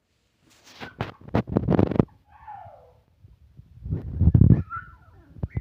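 Puppies rustle and shuffle on a blanket.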